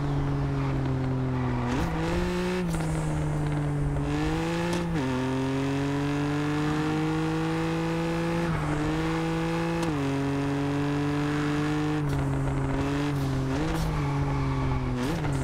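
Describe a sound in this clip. A sports car engine roars steadily, rising and dipping in pitch as it shifts gears.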